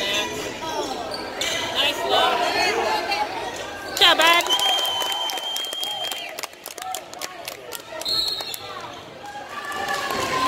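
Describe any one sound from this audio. Spectators shout and cheer in an echoing gym.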